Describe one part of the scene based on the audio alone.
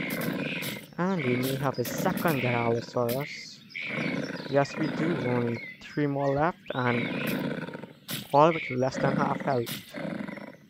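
Large creatures roar and growl.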